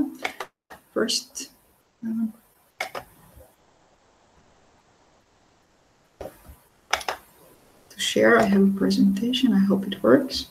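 A woman speaks steadily over an online call, in short bursts with pauses.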